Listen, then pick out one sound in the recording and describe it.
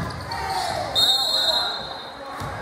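A referee's whistle blows briefly.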